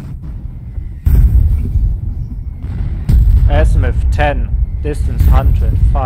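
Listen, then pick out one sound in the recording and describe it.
Artillery shells explode with deep, rumbling booms.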